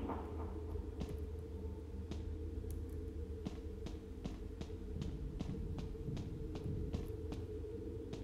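Footsteps tap across a floor at a walking pace.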